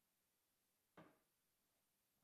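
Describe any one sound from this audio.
A cup is set down on a table with a knock.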